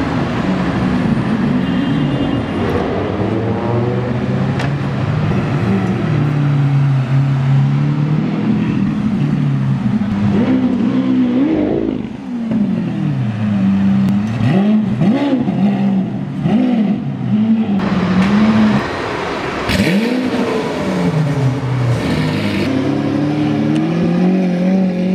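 A sports car engine rumbles loudly and revs up and down.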